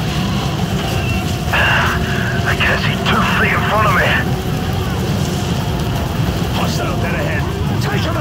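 Wind roars steadily through a dust storm.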